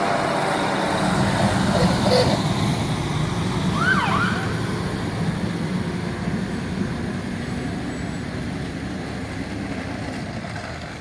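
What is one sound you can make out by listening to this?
A fire truck engine rumbles nearby and slowly fades.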